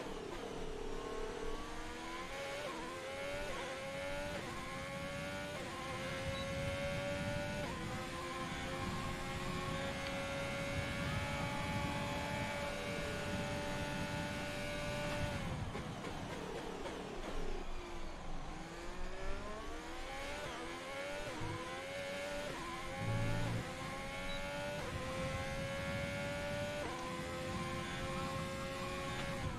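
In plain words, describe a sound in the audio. A racing car engine screams at high revs, rising and dropping in pitch with each gear change.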